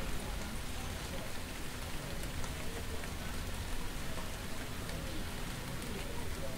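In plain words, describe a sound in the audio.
Rain falls outdoors.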